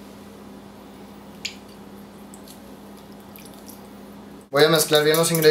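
Lime juice drips into a bowl.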